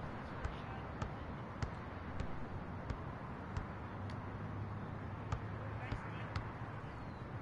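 A basketball bounces steadily on a hard court.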